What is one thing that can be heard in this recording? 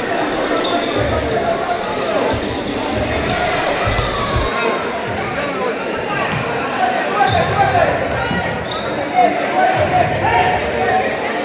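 A ball thuds when kicked.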